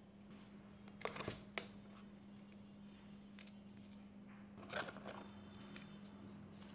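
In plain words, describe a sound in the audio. A phone taps against its box.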